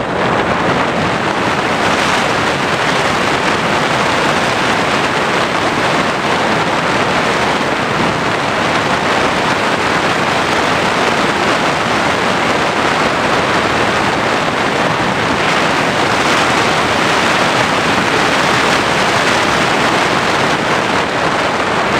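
A propeller aircraft engine drones loudly and steadily.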